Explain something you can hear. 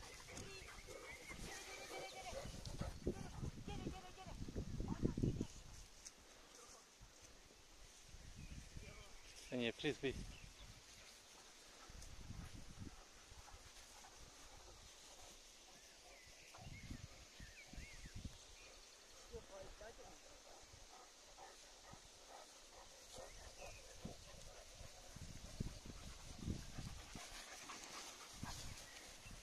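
Dogs rustle through tall grass.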